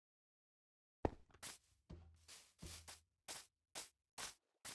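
Footsteps thud softly on grass and dirt in a steady rhythm.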